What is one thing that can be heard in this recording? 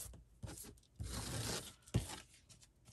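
A plastic scraper rubs across paper.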